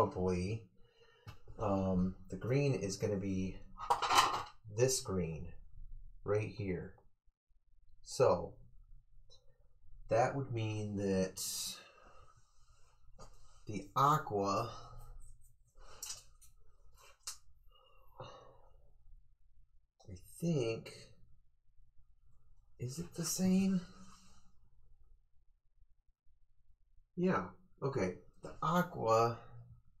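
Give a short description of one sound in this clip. A man talks calmly into a microphone, in short bursts with pauses.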